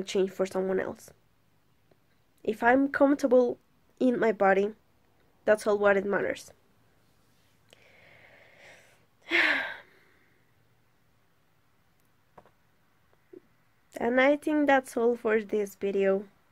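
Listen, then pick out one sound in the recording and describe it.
A young woman talks calmly into a nearby microphone, in short bursts with pauses.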